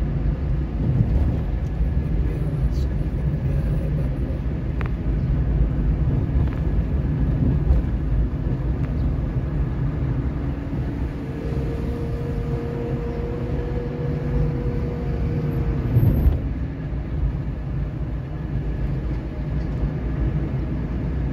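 Tyres rumble on an asphalt road, heard from inside a moving car.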